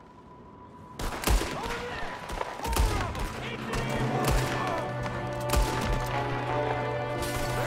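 Gunshots crack loudly, one after another.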